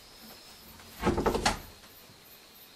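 A wooden door thumps and rattles.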